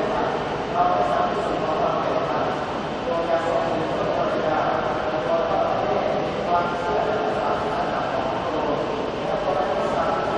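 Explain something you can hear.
A brass band plays a slow tune in a large open space.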